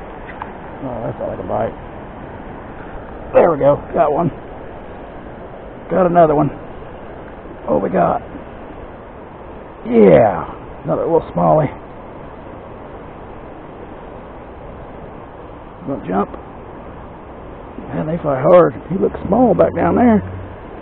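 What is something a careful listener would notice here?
A shallow river ripples and flows steadily outdoors.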